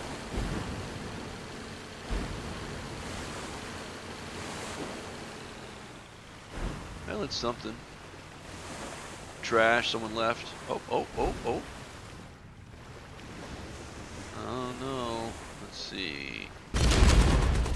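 Water rushes along a boat's hull.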